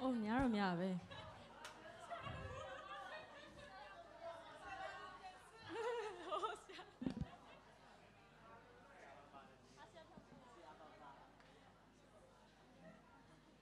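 A crowd of young people chatters and laughs nearby.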